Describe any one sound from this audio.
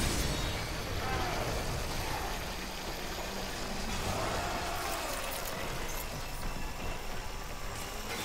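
A creature screeches and snarls close by.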